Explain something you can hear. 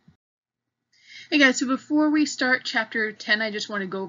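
A young woman speaks calmly and close up through a microphone.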